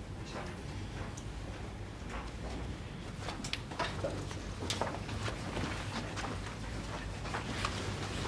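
Footsteps walk across a carpeted floor.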